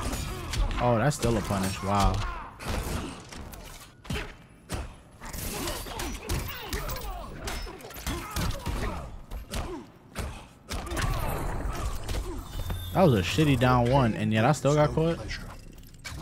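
Fighters grunt and shout as they strike.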